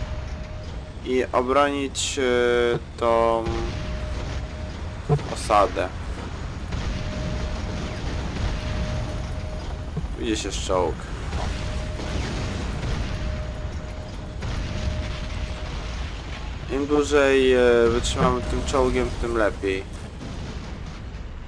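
Explosions boom one after another.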